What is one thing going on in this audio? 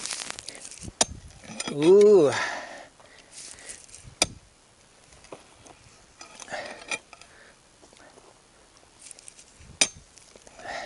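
A pickaxe strikes hard ground with sharp thuds.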